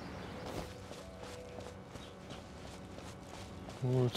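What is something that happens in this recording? Light footsteps patter on grass and dirt.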